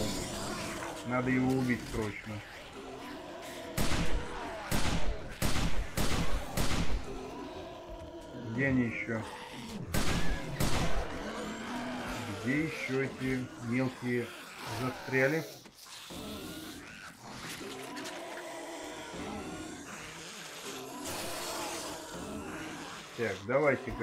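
Zombies growl and groan nearby.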